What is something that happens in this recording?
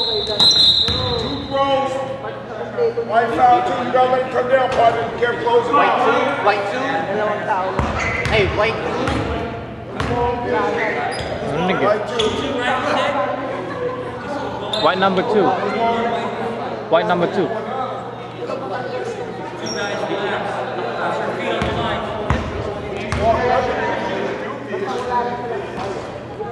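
Several men talk and call out in a large echoing gym.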